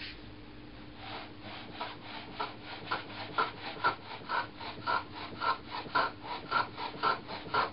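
A chisel pares wood in quick, short strokes.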